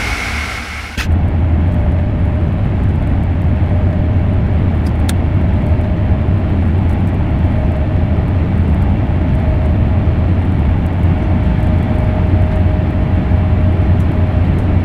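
A train's rush turns to a deep, muffled roar inside a tunnel.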